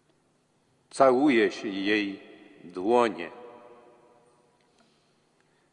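An elderly man chants into a microphone in a large echoing hall.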